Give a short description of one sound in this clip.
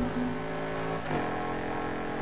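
A racing SUV shifts up a gear.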